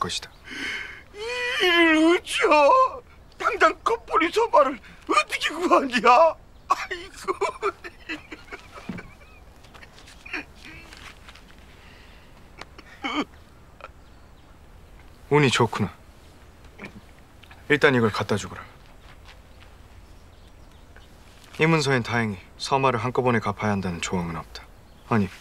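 A middle-aged man speaks with animation, pleading.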